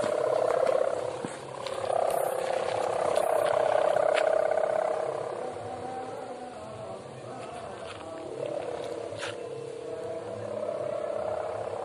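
A kite's hummer drones steadily overhead, wavering in pitch.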